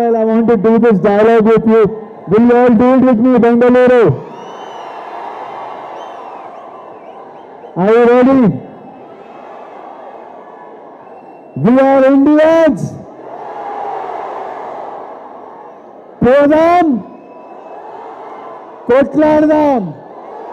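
A young man shouts long, drawn-out calls loudly through a microphone and loudspeakers.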